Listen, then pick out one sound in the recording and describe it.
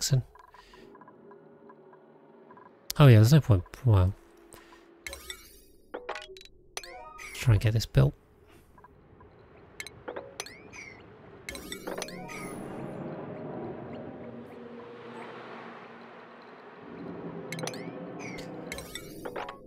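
Short electronic clicks and chimes sound now and then.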